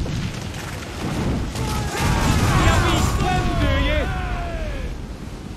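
Cannon fire booms and explosions rumble.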